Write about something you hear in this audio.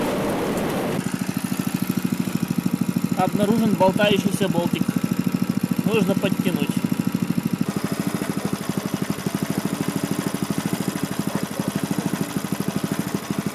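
A small engine idles close by with a steady chugging.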